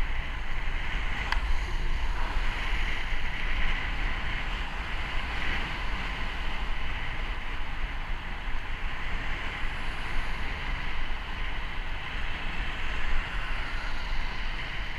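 Wind rumbles loudly against a moving bicycle outdoors.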